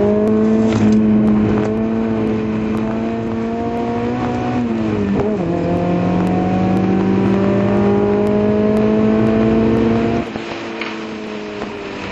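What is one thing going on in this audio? A racing car engine roars close by, its pitch climbing steadily and dropping sharply at a gear change.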